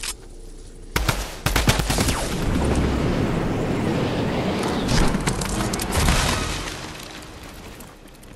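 Wind rushes steadily past during a glide through the air.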